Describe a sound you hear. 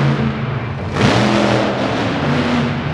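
Metal crunches as a monster truck lands on crushed cars.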